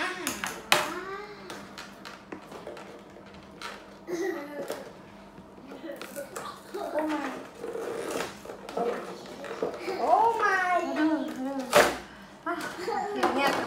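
Plastic packaging crinkles and rustles as it is torn open.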